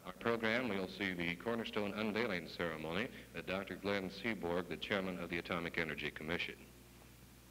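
A man speaks clearly and steadily into a microphone close by.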